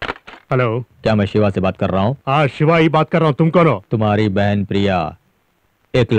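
A man speaks forcefully into a telephone.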